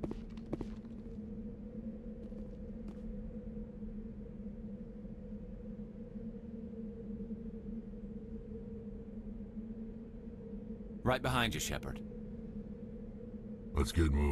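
A vehicle engine idles with a steady low hum.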